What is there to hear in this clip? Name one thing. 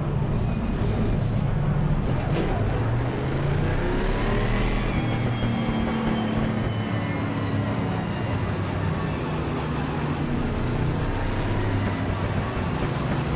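Racing car engines roar and rev up and down.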